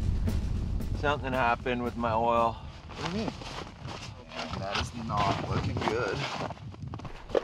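A man talks up close.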